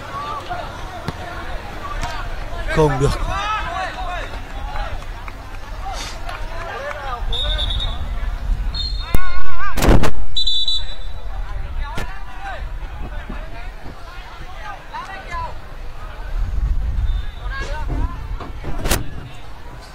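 A football thuds off a player's foot.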